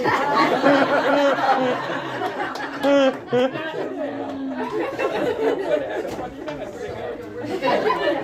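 A crowd of men and women chatter and talk over one another.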